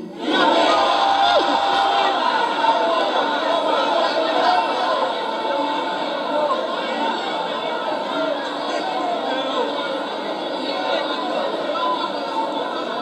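An elderly man speaks with animation through a microphone and loudspeakers in an echoing space.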